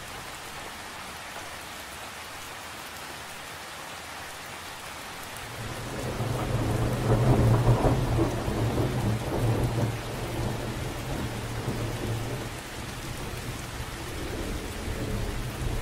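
Rain patters steadily on a lake's surface.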